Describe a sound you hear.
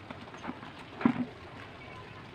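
A plastic bucket is set down with a thud on wet ground.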